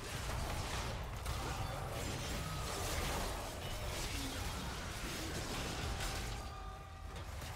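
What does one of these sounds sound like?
Game combat effects clash, zap and whoosh.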